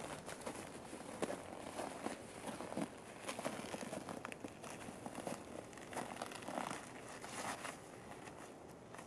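A bicycle is pushed over the forest floor, its tyres crunching on twigs and litter.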